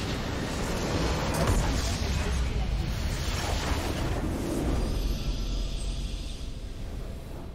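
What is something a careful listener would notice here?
A loud explosion rumbles and crackles, then fades.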